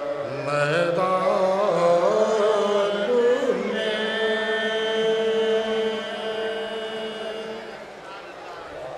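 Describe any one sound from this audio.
A man sings loudly through a microphone.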